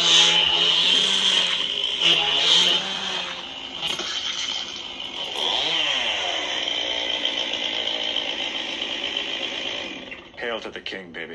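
A toy lightsaber hums loudly and whooshes as it swings close by.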